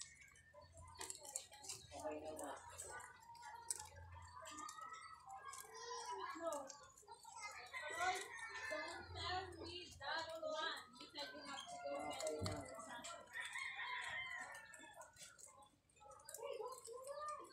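Rabbits nibble and crunch on fresh leaves close by.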